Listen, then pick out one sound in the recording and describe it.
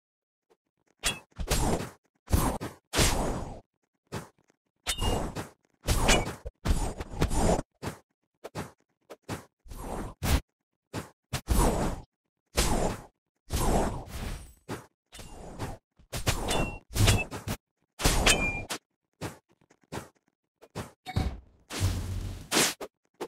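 Blades whoosh and slash in quick bursts.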